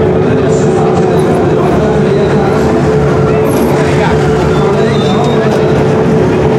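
A car engine idles loudly and steadily close by.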